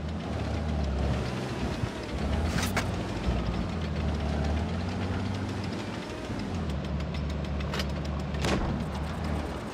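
Tank tracks clatter and grind over the ground.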